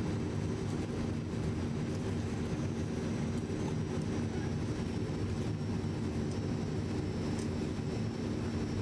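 Aircraft propeller engines drone steadily and loudly.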